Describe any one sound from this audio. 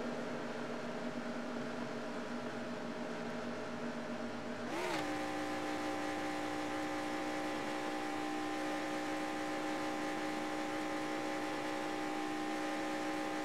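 A racing car engine roars steadily at high speed.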